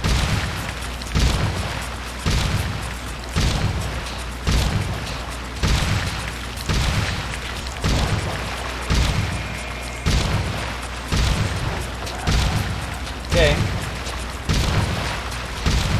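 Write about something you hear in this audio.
Strong wind roars and surges in heavy pulses.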